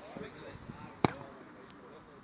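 A foot kicks a football with a dull thump.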